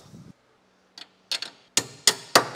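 Metal parts knock and clank sharply.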